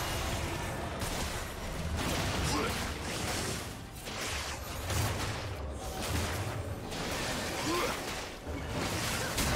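Magic blasts and hits crackle and thud as game characters fight a large monster.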